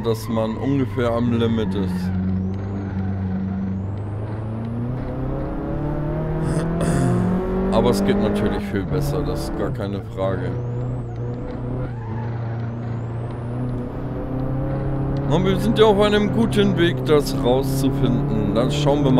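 A car engine hums steadily and rises and falls in pitch as it speeds up and slows down.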